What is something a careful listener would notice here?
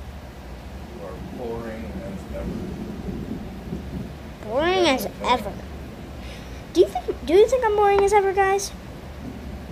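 A young girl speaks close to the microphone.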